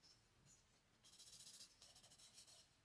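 Fingers rub and smudge charcoal on paper.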